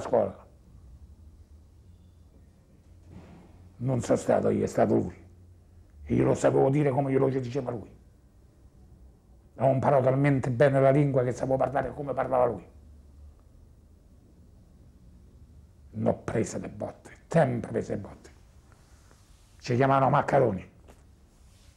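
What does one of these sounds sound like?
An elderly man speaks calmly and slowly, close by, with long pauses.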